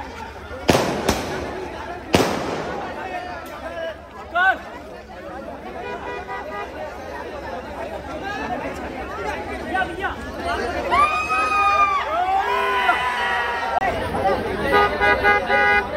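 A large crowd of men cheers and shouts excitedly close by, outdoors.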